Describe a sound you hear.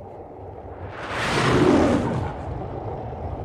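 A lion roars.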